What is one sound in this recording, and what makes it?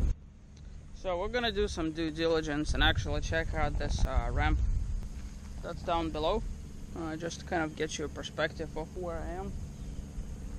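A young man talks casually close by, outdoors.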